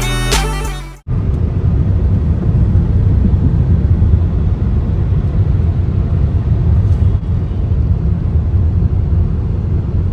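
A car engine hums with a low, steady rumble of tyres on the road from inside the car.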